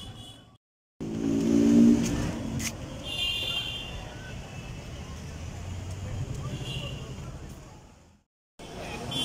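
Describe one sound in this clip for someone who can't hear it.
Traffic rumbles along a street at night.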